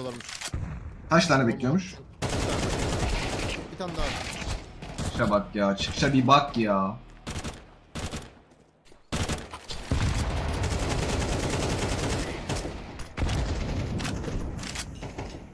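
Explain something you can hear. Gunshots fire rapidly in quick bursts.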